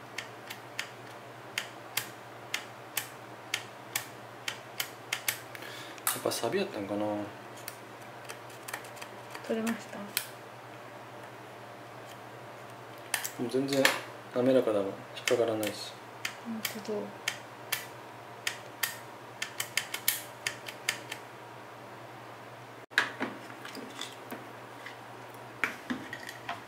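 A plastic part clicks and snaps repeatedly as it is worked by hand.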